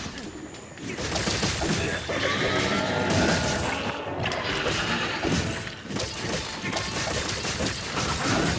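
Blades clash and strike with loud impacts.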